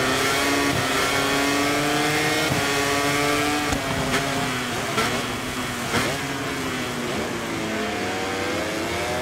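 A motorcycle engine screams at high revs, its pitch rising and dropping with each gear change.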